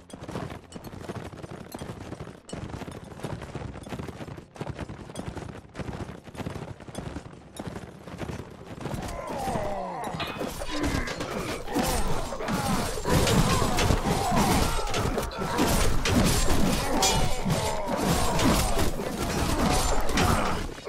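Horses gallop with thudding hooves.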